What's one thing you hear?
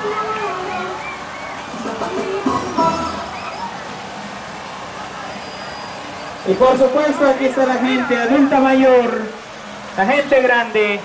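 Singing blares loudly from loudspeakers on a passing truck.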